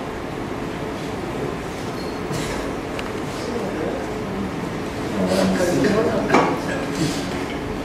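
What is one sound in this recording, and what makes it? A young man talks and laughs, close by.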